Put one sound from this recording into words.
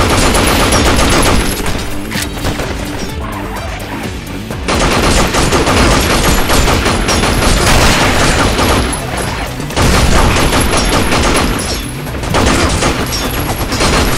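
Automatic rifles fire in rapid bursts.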